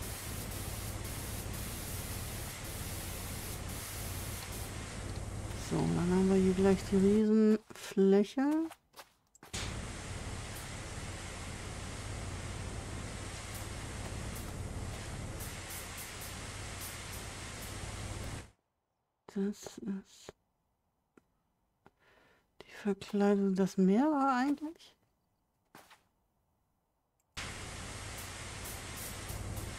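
A pressure washer sprays water with a steady, hissing rush.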